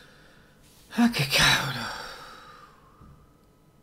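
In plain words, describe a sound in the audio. A man speaks briefly close to a microphone.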